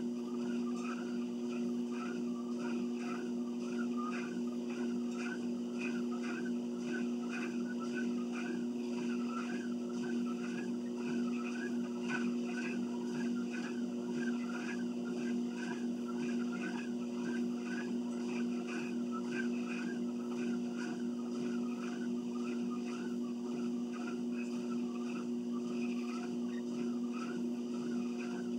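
Footsteps thud in an even rhythm on a treadmill belt.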